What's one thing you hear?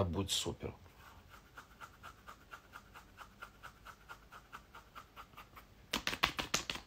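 A hand scratches and rubs at hair close by, in quick even strokes.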